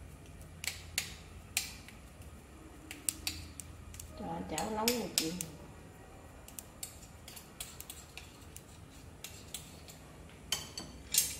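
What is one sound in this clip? Metal spoons clink and scrape against a bowl.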